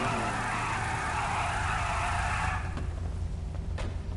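A car engine revs with a rumbling exhaust.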